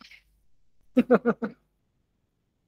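A woman laughs softly close to a microphone.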